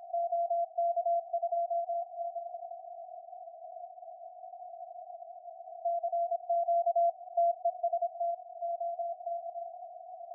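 Morse code beeps come through a radio receiver in quick bursts.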